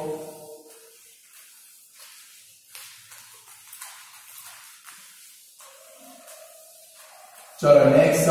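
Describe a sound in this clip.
A board eraser rubs and scrapes across a whiteboard.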